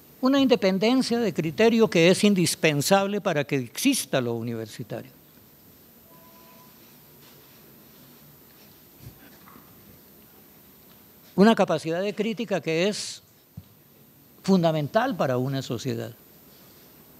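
An elderly man speaks calmly into a microphone in a large room, pausing between phrases.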